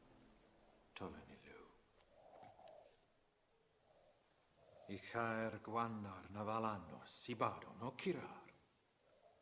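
A man speaks slowly and gravely, close by.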